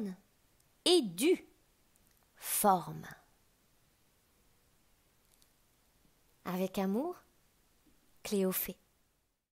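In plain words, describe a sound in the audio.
A man speaks calmly in short phrases, with long pauses between them.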